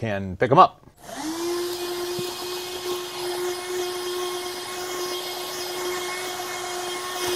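A handheld vacuum cleaner whirs steadily.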